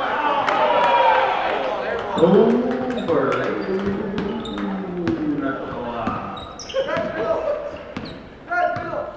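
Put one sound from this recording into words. A basketball bounces on a hard floor in an echoing gym.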